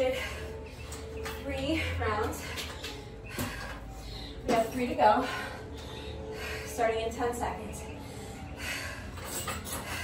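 A metal frame scrapes and clanks on concrete.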